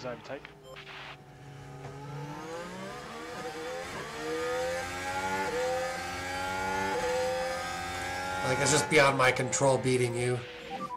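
A racing car engine whines at high revs and rises in pitch.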